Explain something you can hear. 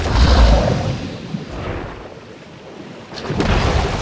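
Water splashes as a large fish thrashes through it.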